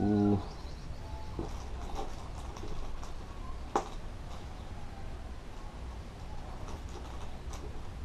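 A small plastic bag crinkles softly.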